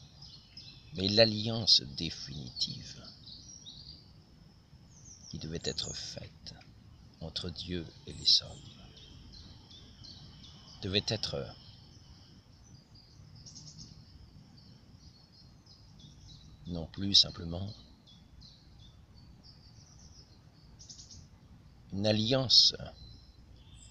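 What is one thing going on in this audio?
An elderly man speaks calmly and close by, in short bursts with pauses.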